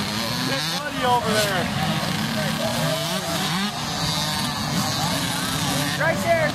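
A small motorbike engine revs and sputters close by.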